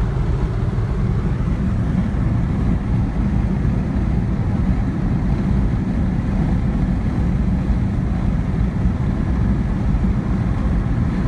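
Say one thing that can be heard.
Tyres roar steadily on the road beneath a moving car.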